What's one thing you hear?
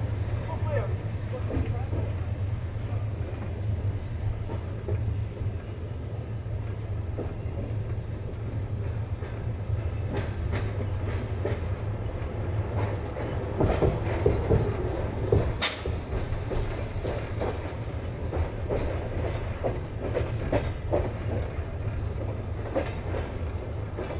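A train rumbles steadily along the rails, heard from inside a carriage.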